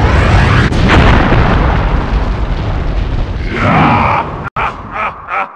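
An explosion bursts with a loud rumbling roar.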